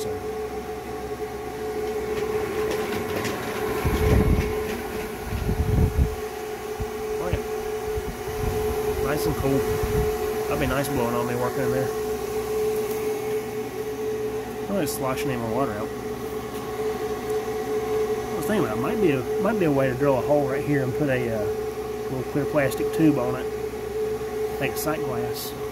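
A small fan hums steadily.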